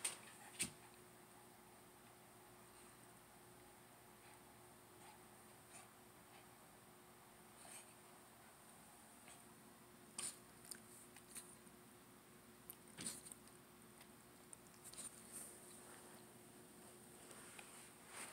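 A small dog chews and gnaws on a rubber ball.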